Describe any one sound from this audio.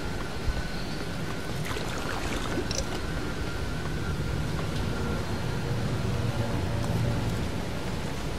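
Footsteps clank on a metal walkway.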